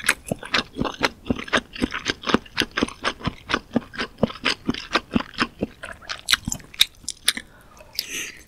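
A woman chews soft food with wet, smacking sounds close to the microphone.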